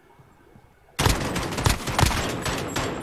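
Rapid gunfire rattles from a game.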